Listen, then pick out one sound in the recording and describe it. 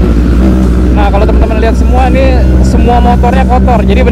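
Another motorcycle rides past nearby.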